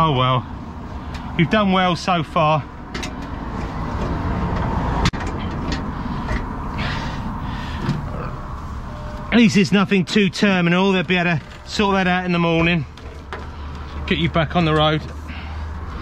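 A man talks close by, in short bursts.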